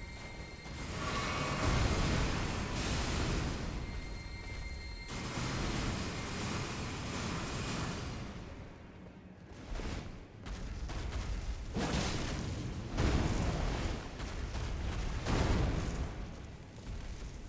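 A flaming sword whooshes through the air in repeated swings.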